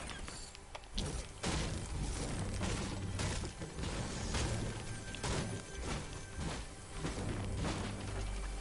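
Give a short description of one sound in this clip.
A pickaxe strikes wood with repeated hard knocks.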